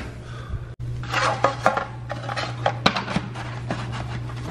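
Plastic parts of a leaf blower click and knock together.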